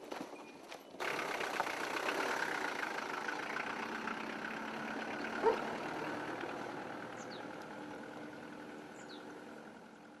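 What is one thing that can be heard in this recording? A van engine runs and the van drives away over snow.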